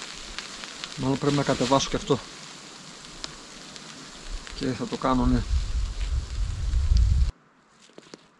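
Wind buffets a tarp noisily.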